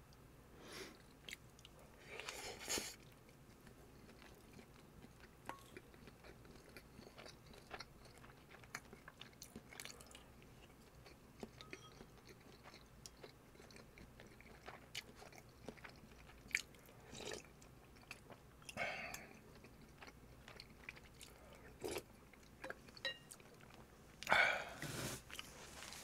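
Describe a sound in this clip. A man chews and slurps food up close into a microphone.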